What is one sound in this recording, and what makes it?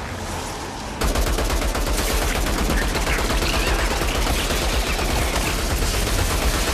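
A rapid-fire gun shoots in fast, loud bursts.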